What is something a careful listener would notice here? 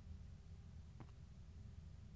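A player lands on stone with a thud.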